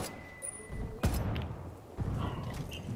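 An explosion booms with a deep roar.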